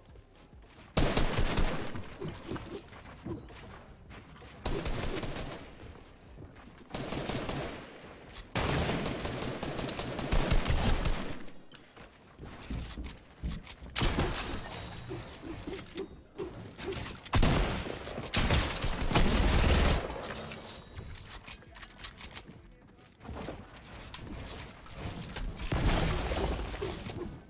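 Wooden panels clatter and thud as they are quickly built.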